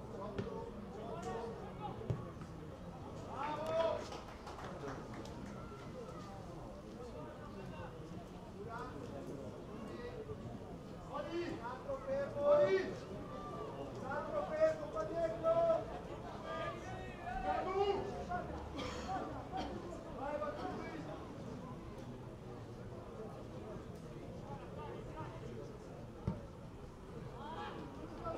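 Young men shout to each other outdoors.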